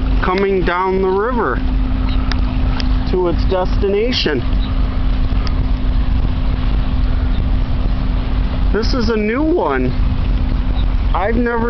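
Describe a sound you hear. Wind blows hard across open water, rumbling in the microphone.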